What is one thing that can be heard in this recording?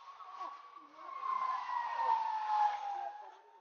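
A police siren wails nearby and slowly falls in pitch.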